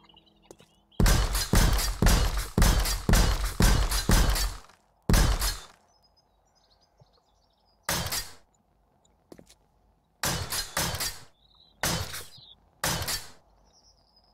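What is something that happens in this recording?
A power tool hammers against a wall in quick, loud bursts.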